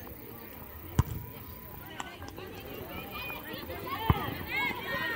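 A football is kicked with a sharp thud.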